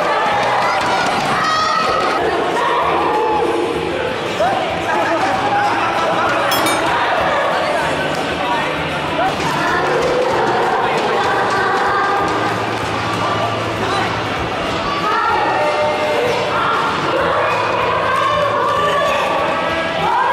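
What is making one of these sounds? A crowd of young people cheers and shouts with excitement in an echoing hall.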